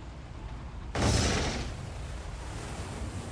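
A shell splashes into the water close by with a loud burst.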